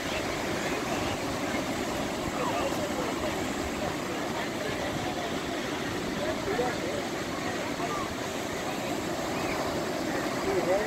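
Children's voices call and shout faintly in the distance.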